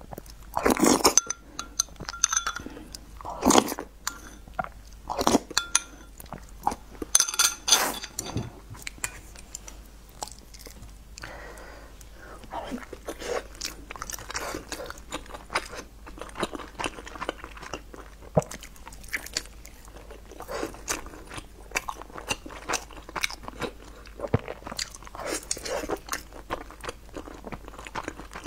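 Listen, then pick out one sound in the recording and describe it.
A person chews and smacks food wetly close to a microphone.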